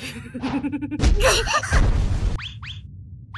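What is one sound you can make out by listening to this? An energy blast bursts with a loud whoosh and boom.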